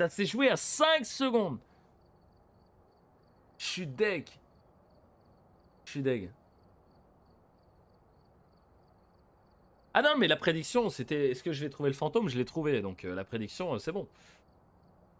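A young man talks casually into a close microphone, in short bursts with pauses.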